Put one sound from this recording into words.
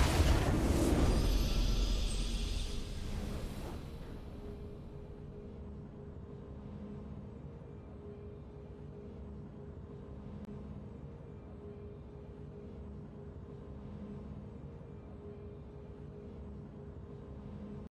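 A triumphant game fanfare blares and then fades into a soft, steady hum.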